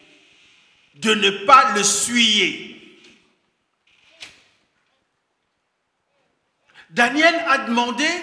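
A man preaches with animation into a microphone, heard through loudspeakers in an echoing hall.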